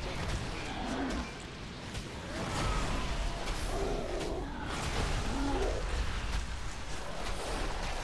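Spell effects crackle and burst during a game battle.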